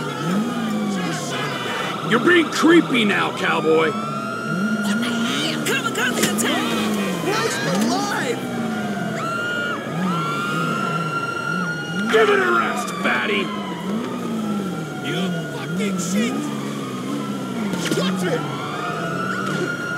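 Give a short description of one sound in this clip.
A motorcycle engine revs up and down as the bike rides along.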